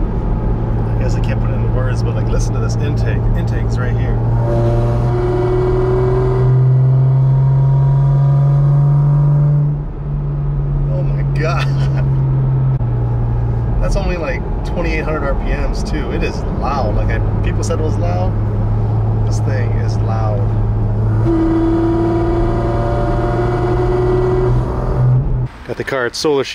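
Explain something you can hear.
A car engine drones steadily inside the cabin, rising and falling in pitch.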